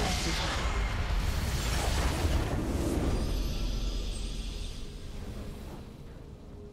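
A triumphant fanfare swells and then fades.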